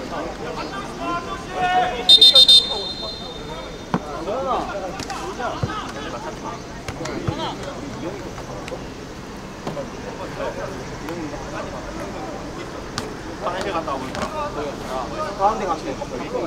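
Young men call out to each other from a distance across an open field.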